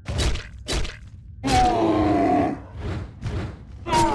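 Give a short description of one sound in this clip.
A heavy mace swings and strikes with dull thuds.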